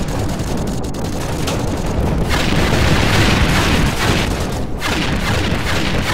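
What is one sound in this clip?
Explosions boom close by.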